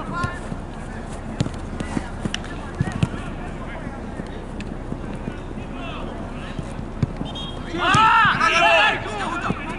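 A football thuds as players kick it across artificial turf.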